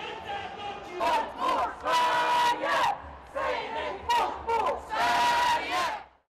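A crowd of marchers chants loudly in unison outdoors.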